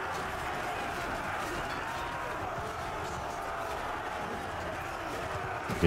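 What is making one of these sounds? A large crowd of soldiers shouts and clashes in a battle.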